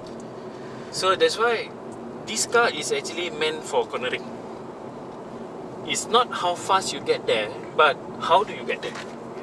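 A man speaks calmly nearby inside a car.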